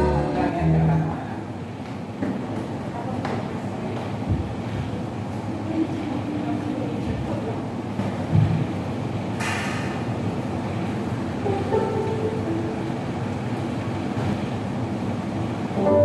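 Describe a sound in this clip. A bass guitar plays.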